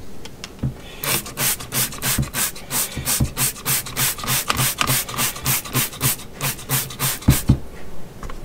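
A cloth is rubbed briskly in a sink with quick, rhythmic swishes.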